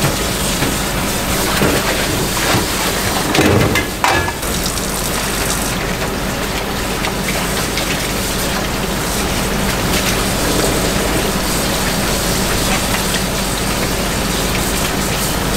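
Hands slosh and squish wet noodles in water.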